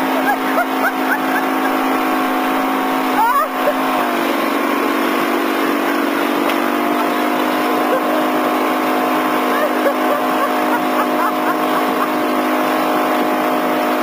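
Water rushes and splashes in the wake of a boat.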